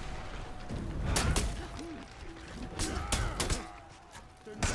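Metal weapons clash and clang in combat.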